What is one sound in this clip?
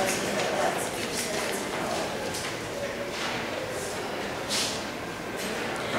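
A young woman speaks calmly into a microphone, heard through a loudspeaker in an echoing room.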